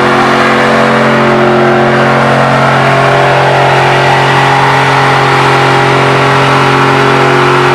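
An engine roars loudly at high revs.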